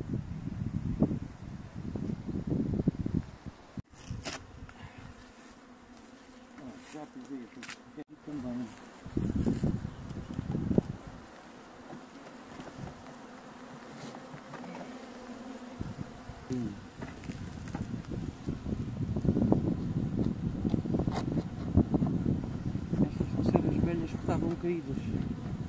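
Bees buzz around.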